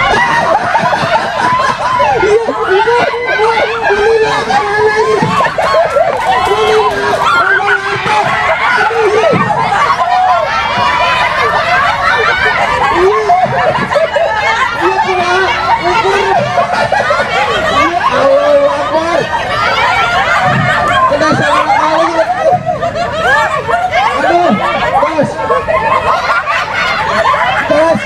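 A crowd of women shout and cheer excitedly outdoors.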